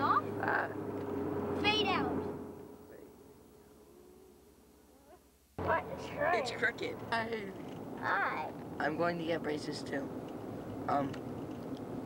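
A boy talks with animation close by.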